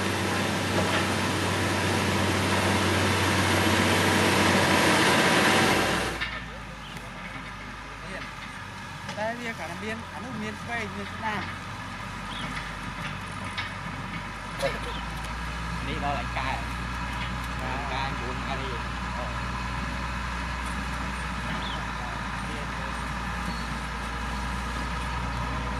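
A heavy diesel engine rumbles steadily.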